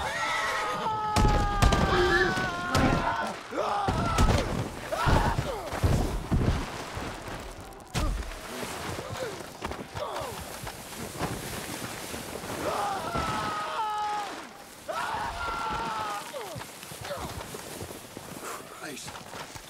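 A body thuds and tumbles down a snowy rock slope.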